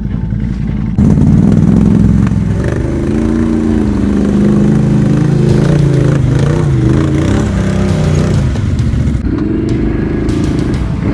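Another all-terrain vehicle engine revs hard nearby.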